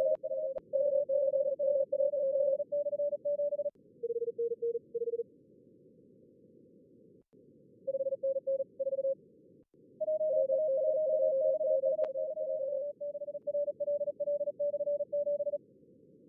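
Morse code beeps sound quickly over a radio, against a low hiss.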